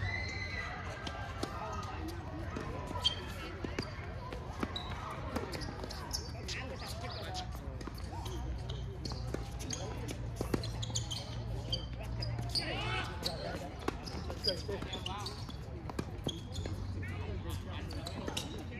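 Tennis rackets strike a ball back and forth in a rally outdoors.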